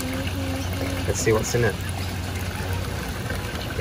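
Water sloshes and splashes as a sieve is shaken in it.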